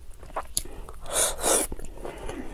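A young woman slurps loudly close to a microphone.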